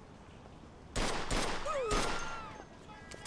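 Gunshots crack loudly in quick succession.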